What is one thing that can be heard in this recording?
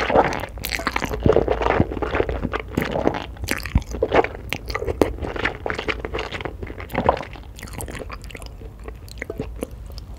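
A woman chews wetly and smacks her lips close to a microphone.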